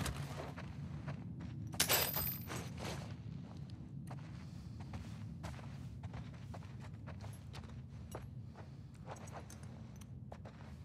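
Footsteps tread slowly across a wooden floor.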